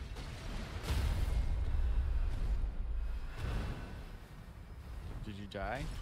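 Metal blades clash and strike.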